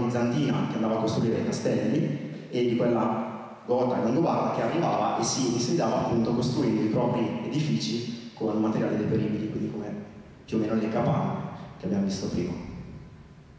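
A man speaks calmly into a microphone over loudspeakers in a large hall.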